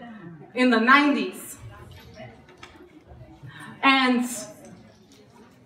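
A woman sings loudly into a microphone in a room with some echo.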